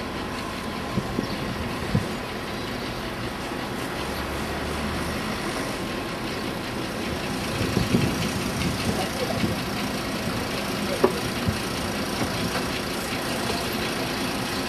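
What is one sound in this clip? Steam engines hiss and chuff nearby.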